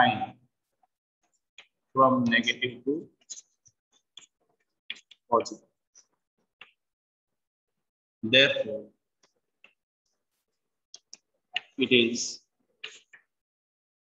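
A man explains calmly, speaking in short bursts with pauses.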